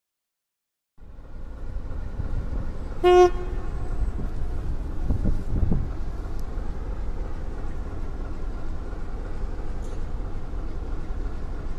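A diesel locomotive idles with a low, steady rumble.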